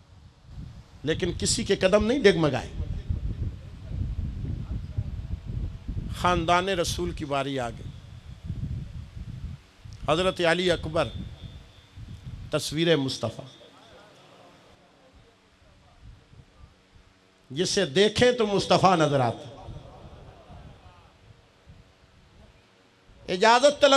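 A man preaches passionately into a microphone, his voice carried over loudspeakers with echo, in bursts separated by pauses.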